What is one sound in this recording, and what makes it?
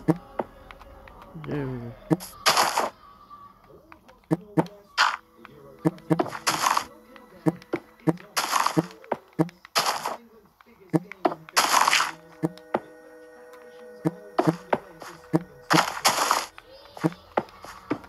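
Blocks in a video game crunch and thud as they are placed and broken, in short repeated bursts.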